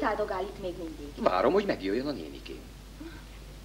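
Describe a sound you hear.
A woman speaks calmly from across a room.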